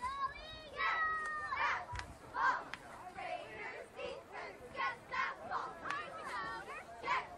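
A group of young girls chant and cheer loudly outdoors.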